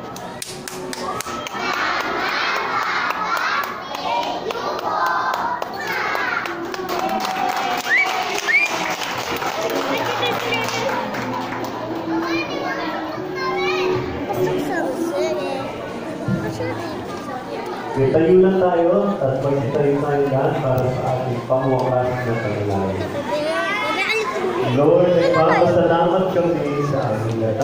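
A large group of young children sings together loudly.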